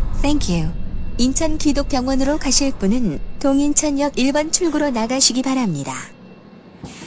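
A train rolls slowly to a stop.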